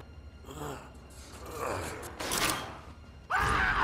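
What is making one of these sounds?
A metal vent grate is wrenched loose with a clanging crash.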